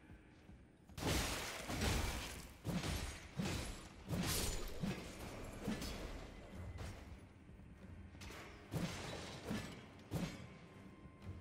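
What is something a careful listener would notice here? Blades clash and slash in heavy, loud blows.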